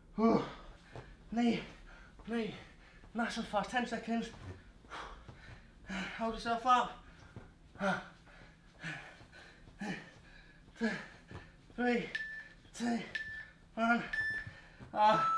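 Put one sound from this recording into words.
A man breathes hard and grunts with effort, close by.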